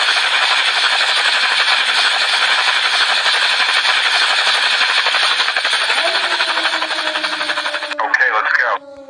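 A helicopter's rotor whirs steadily overhead.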